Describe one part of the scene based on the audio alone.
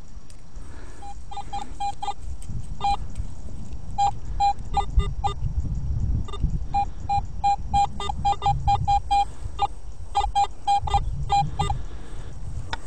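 A metal detector beeps as its coil sweeps over grass.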